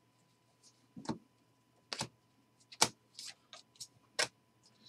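Trading cards flick and tap against each other as they are sorted.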